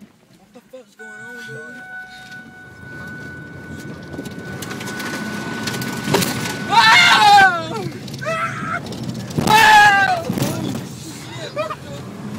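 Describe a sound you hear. A minivan drives along, heard from inside.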